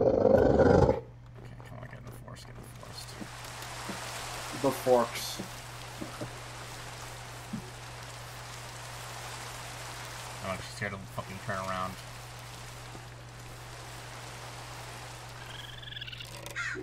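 Rain falls with a steady soft hiss.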